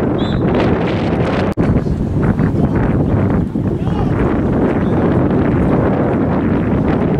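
Young men call out faintly in the distance.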